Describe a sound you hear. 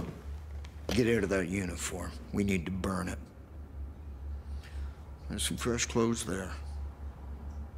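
An older man speaks calmly in a low voice, close by.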